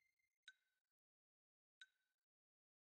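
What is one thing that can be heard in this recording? A short electronic menu beep sounds twice.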